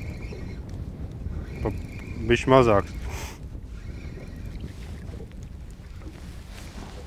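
Choppy water laps against a boat's hull.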